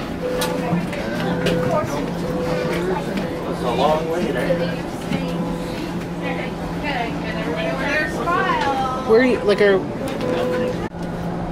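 Adults and a child talk nearby.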